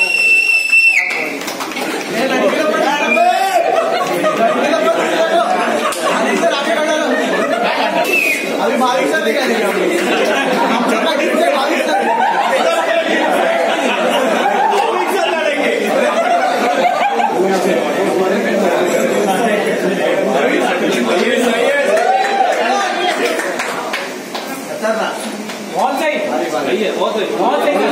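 A crowd of men cheer and shout loudly close by.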